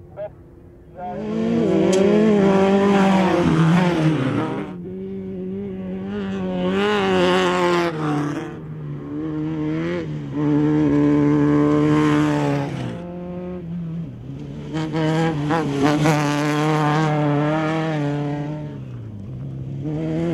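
Off-road race car engines roar and rev loudly as the cars pass.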